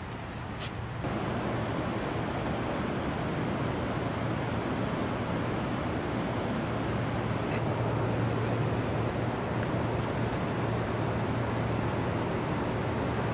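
A river rushes steadily over rocks.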